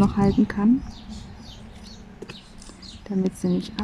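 A plastic pen taps softly and clicks against a canvas.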